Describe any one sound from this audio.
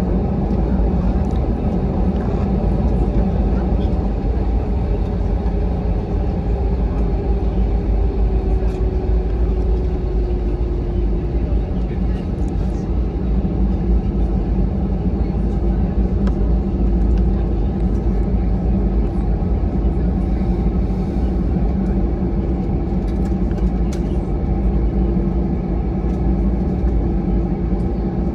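Jet engines roar steadily and loudly inside an airliner cabin as it taxis.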